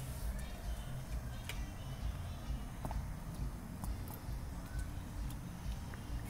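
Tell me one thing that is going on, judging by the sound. A dog's claws click on concrete.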